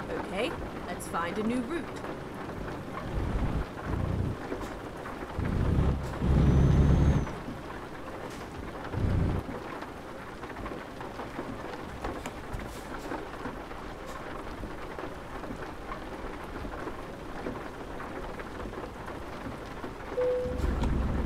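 A truck engine rumbles steadily, with low surges now and then.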